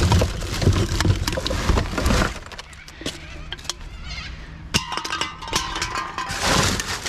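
Empty cans and bottles clink and rattle together.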